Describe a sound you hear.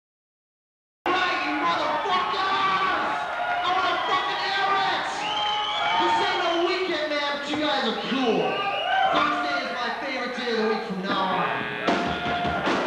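A man sings loudly and hoarsely into a microphone.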